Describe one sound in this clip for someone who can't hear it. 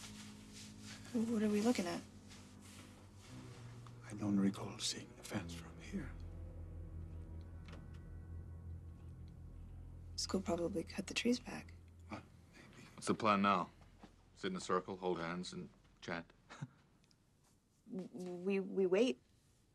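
A middle-aged man speaks in a low, tense voice.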